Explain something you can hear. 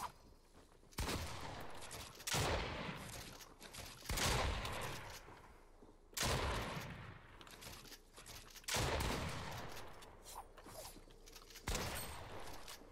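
Gunfire bursts out in quick rounds.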